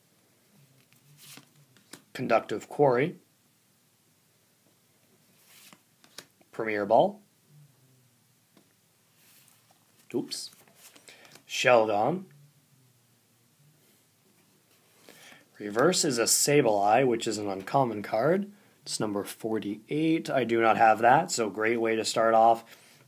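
Playing cards slide and flick softly against each other.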